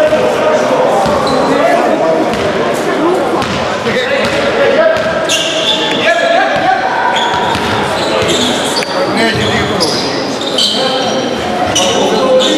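Young men call out to each other across the hall.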